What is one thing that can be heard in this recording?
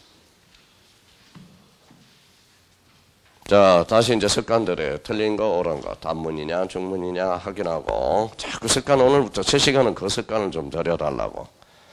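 An eraser wipes across a chalkboard.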